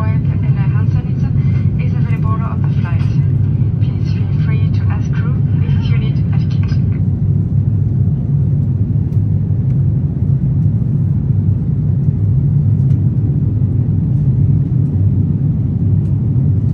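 A jet engine roars in a steady low drone.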